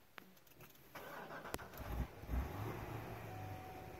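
A car engine cranks and starts up with a roar.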